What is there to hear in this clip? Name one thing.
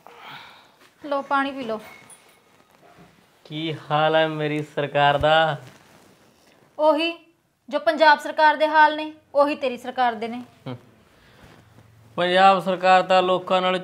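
A woman talks sharply, close by.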